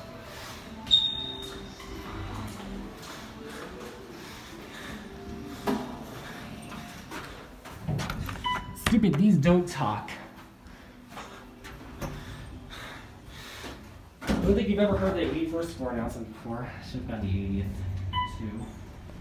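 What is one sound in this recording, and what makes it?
An elevator chime rings with a short high ding.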